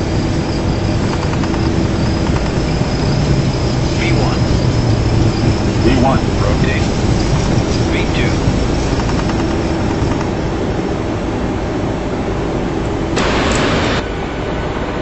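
Jet engines roar steadily as an airliner speeds down a runway and lifts off.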